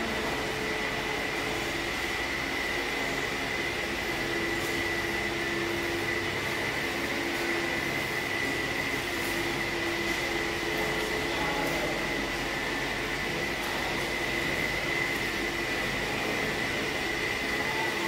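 Machinery drones steadily with a high whine.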